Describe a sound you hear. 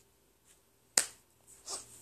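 A boy claps his hands together sharply close by.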